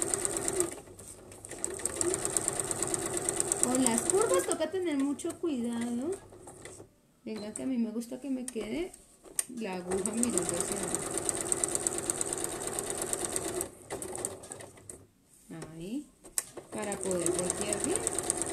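A sewing machine stitches rapidly, stopping and starting now and then.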